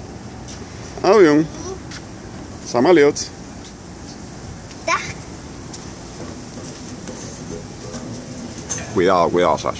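A toddler calls out in a high voice.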